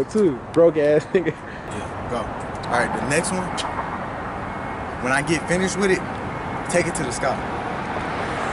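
A young man raps in a rhythmic voice.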